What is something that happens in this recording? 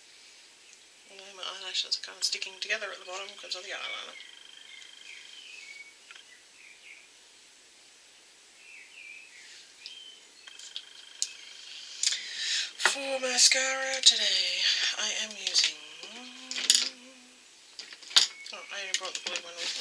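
A woman talks calmly and close by.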